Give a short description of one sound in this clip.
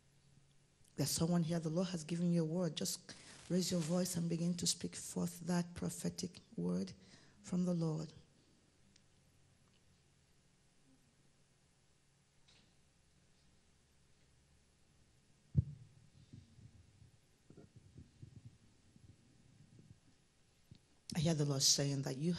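A woman sings through a loudspeaker in a reverberant hall.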